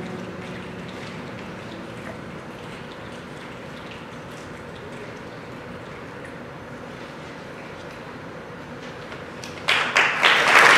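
A children's choir sings in a large hall.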